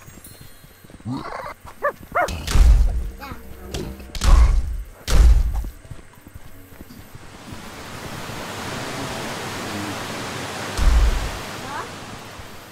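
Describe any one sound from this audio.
A young boy talks excitedly close to a microphone.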